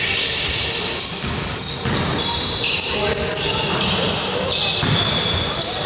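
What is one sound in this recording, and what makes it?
Sneakers squeak sharply on a hard gym floor in a large echoing hall.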